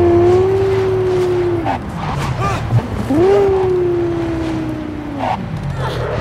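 Tyres screech on the road as a car turns sharply.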